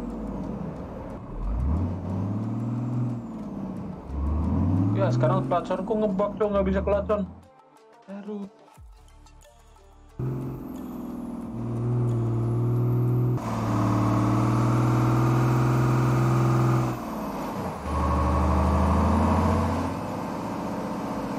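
A truck engine revs up and drops as gears change.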